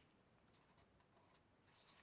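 A pen scratches briefly on paper.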